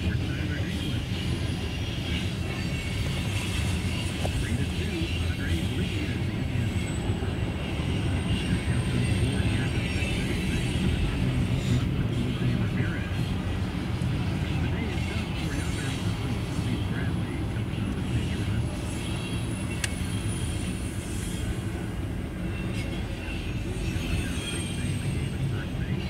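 Freight cars rumble and clatter steadily past on the rails, heard from inside a car.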